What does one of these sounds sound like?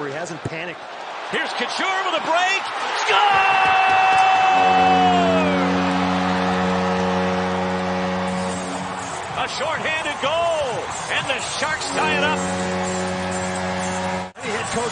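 A crowd cheers and claps loudly in a large echoing arena.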